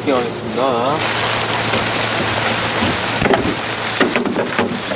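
Heavy artificial rain pours onto pavement.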